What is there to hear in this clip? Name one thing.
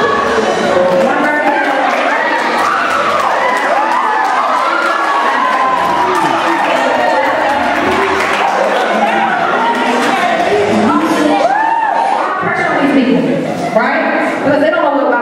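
A crowd chatters throughout.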